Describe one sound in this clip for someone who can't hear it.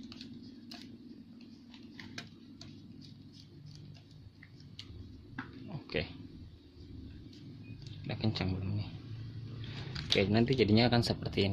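Small plastic parts click and snap together.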